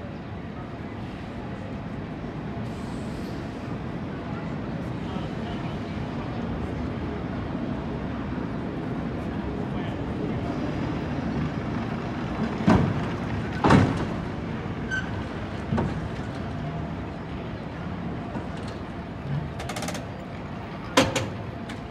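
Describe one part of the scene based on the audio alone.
A cable car rumbles closer along the street rails.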